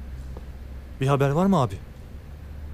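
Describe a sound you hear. A young man asks a short question calmly.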